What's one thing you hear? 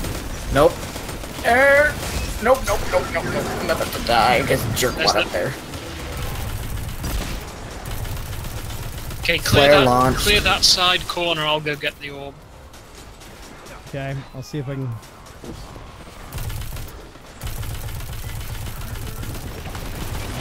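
Gunfire blasts in quick bursts.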